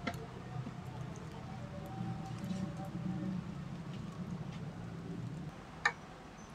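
Thick sauce pours and splatters wetly.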